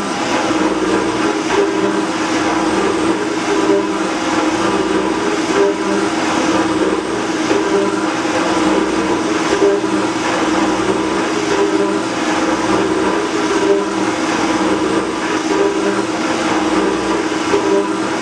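A metal shaping machine hums and clatters steadily, its ram scraping back and forth in an even rhythm.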